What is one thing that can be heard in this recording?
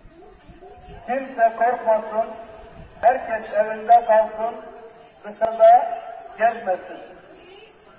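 A man's voice chants loudly through a loudspeaker, echoing outdoors.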